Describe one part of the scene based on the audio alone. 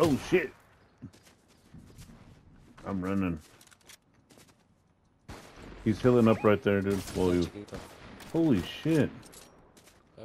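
Footsteps patter quickly through dry grass.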